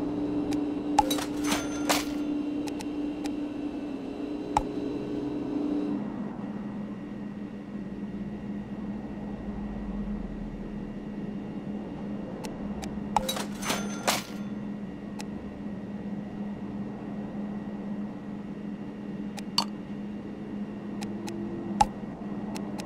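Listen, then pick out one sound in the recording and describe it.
Short interface clicks tick sharply now and then.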